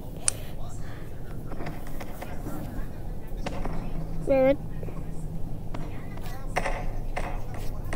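A limp body thuds against steps and the floor.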